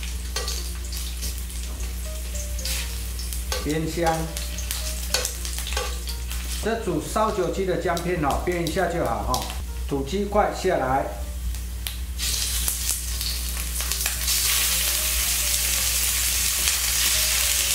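Metal tongs scrape and tap against a pan.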